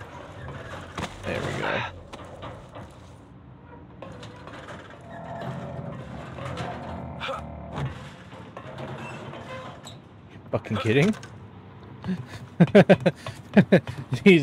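Footsteps clang on metal steps and grating.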